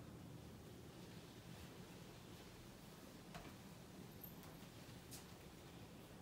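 A body shifts and rustles on a mat.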